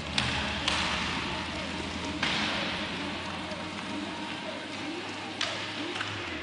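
Hockey sticks click sharply against a puck and the floor.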